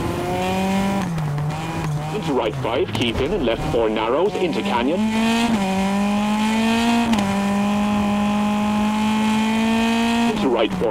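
A rally car engine revs hard, its pitch rising and falling through gear changes.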